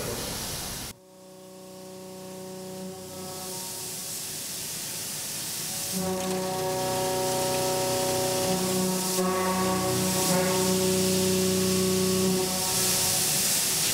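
A machine spindle whirs steadily with a high hum.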